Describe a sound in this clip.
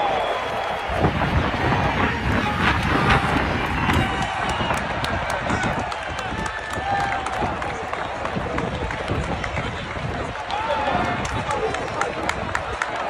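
A marching band's drums beat as the band marches in.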